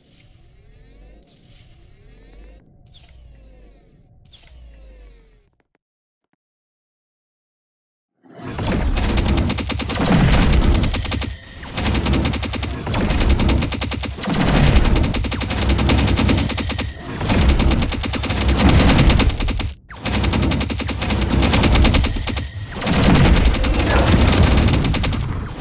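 Game weapons fire rapid laser zaps and blasts.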